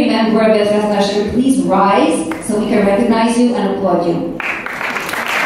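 A woman speaks clearly into a microphone in a large echoing hall.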